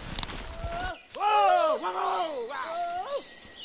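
A red deer stag roars loudly with a rising and falling call.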